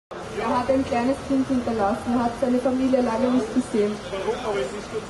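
A young woman speaks with emotion through a microphone outdoors.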